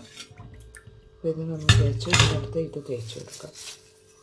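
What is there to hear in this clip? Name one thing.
A metal part clinks against a metal bowl.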